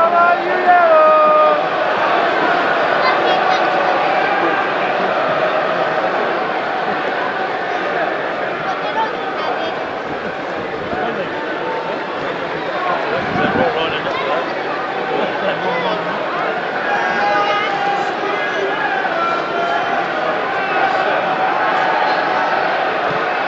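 A large stadium crowd chants and sings loudly all around.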